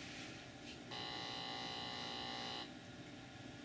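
A short electronic tune plays from a television speaker.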